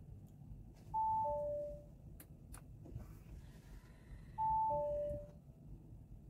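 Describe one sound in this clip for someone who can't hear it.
A car's dashboard gives soft two-tone electronic chimes.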